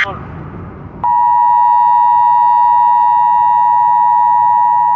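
A steady, shrill alert tone sounds from a radio broadcast.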